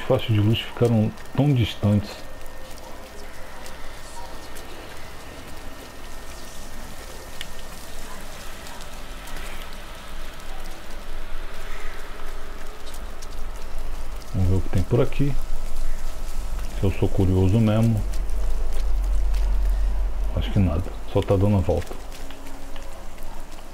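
Heavy rain falls.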